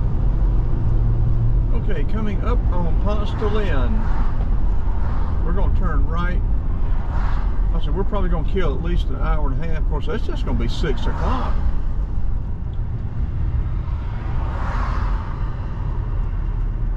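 A car drives along a paved road with a steady low rumble from inside the car.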